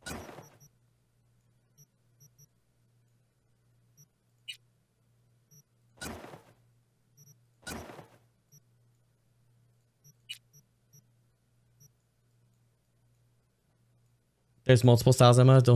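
Soft electronic menu clicks and swishes sound as options are chosen.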